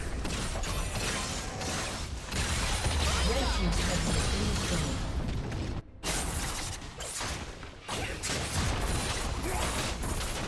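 Magic blasts and explosions crackle and boom in a fast fight.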